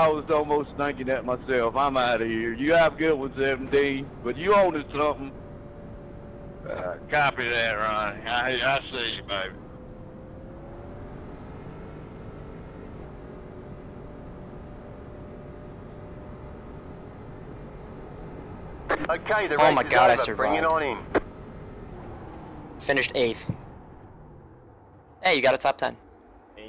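A race car engine drones steadily, easing off as the car slows.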